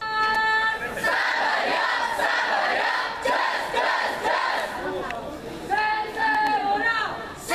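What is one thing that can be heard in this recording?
A group of teenagers chant together loudly.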